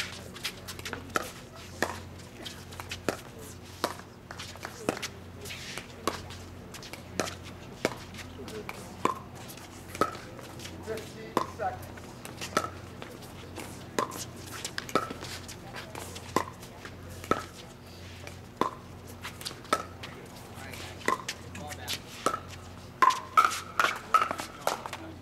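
Paddles pop against a plastic ball in a quick, steady rally.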